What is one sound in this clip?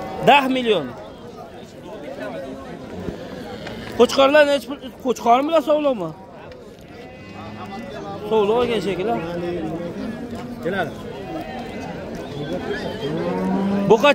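Men talk and call out nearby in a busy outdoor crowd.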